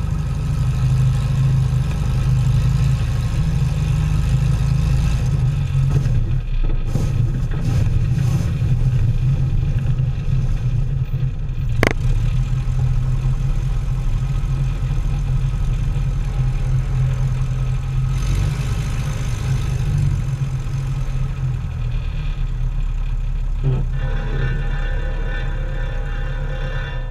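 A small propeller plane's engine drones loudly and steadily close by.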